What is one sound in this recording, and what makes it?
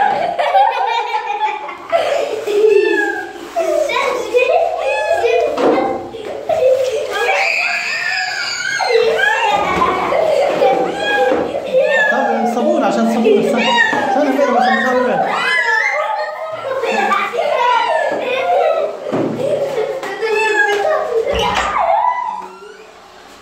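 A cat meows loudly and repeatedly, close by.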